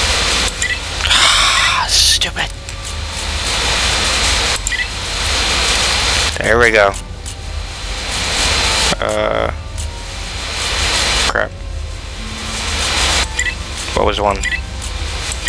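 Short electronic menu sounds chime as options are selected.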